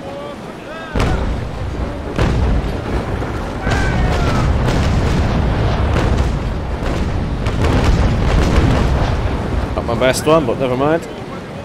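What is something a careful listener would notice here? Cannons fire in heavy, rumbling booms.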